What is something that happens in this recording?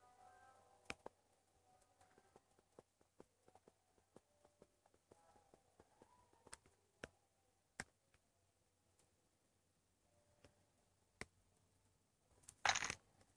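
Game footsteps tap softly and quickly, played through a small speaker.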